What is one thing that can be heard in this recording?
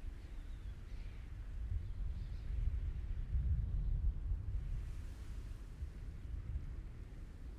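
Thunder rumbles low and long.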